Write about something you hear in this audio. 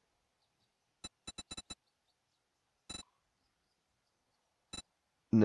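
Menu clicks tick softly.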